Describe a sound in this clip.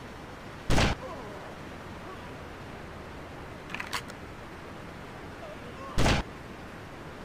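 A sniper rifle fires single loud shots.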